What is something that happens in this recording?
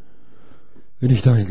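A middle-aged man speaks close into a microphone.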